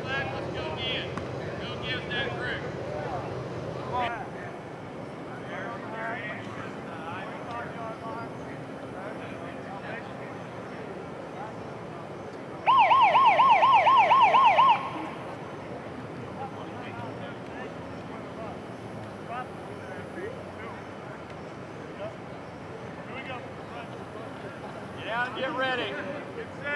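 Young men talk and call out nearby, outdoors.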